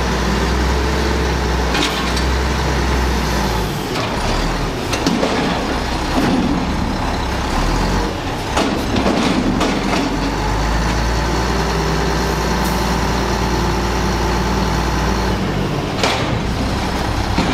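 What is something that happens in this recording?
Hydraulic arms whine as they lift and lower a bin.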